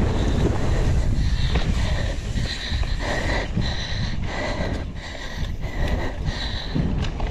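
Bike tyres crunch and skid over loose dirt.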